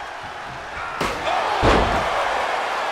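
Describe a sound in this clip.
A metal chair slams down hard onto a body.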